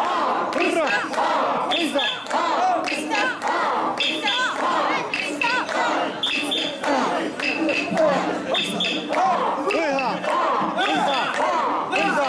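A crowd of young men and women chant loudly together in a steady rhythm, close by.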